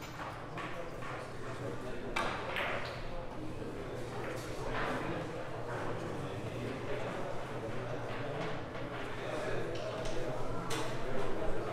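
Billiard balls click against each other.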